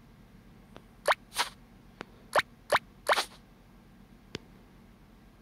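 Short menu clicks sound as buttons are pressed.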